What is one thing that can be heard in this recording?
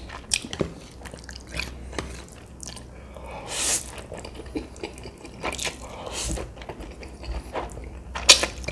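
A man chews wetly with his mouth full.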